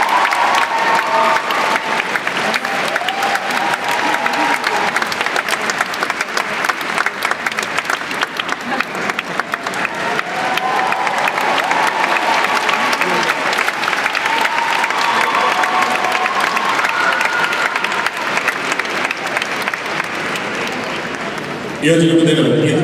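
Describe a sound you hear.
A large crowd applauds and cheers in an echoing arena.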